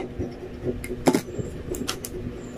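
A jar lid clicks and knocks.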